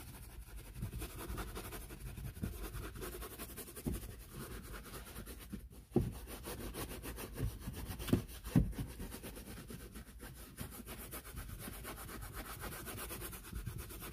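A stiff brush scrubs a foamy carpet with a steady scratching.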